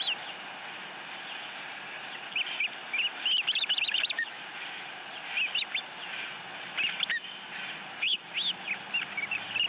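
Osprey chicks chirp and whistle in short, high bursts.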